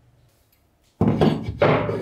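Metal parts knock and rattle as they are handled.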